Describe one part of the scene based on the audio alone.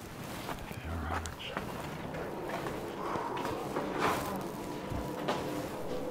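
A glass door is pulled open and swings shut.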